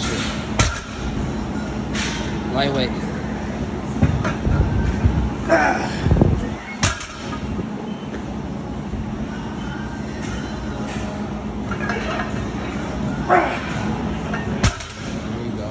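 Weight plates clank against the floor as a barbell is set down.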